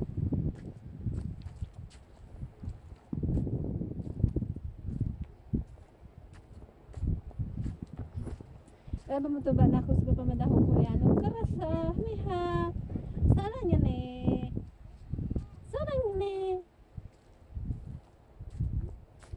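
Sandals scuff and tap on a hard concrete surface with each step.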